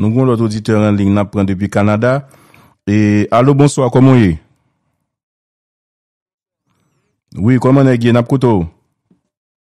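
A man speaks with animation over a phone line.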